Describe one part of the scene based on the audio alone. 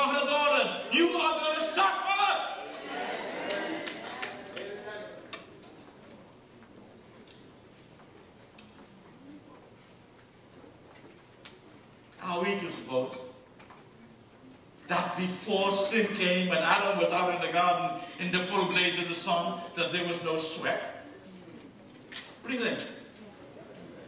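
An elderly man speaks with animation through a microphone.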